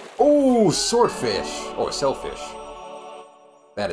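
A short, cheerful electronic jingle plays.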